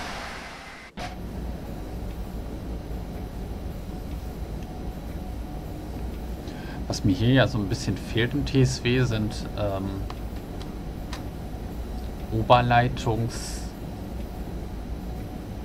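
A train rumbles low and steady from inside the driver's cab.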